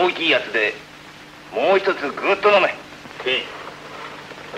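A man speaks firmly, heard through an old, hissy film soundtrack.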